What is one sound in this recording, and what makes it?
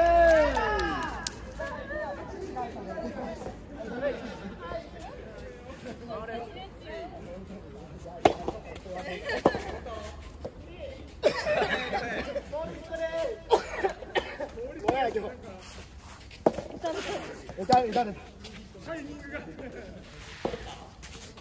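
Tennis balls are struck with rackets, with sharp pops.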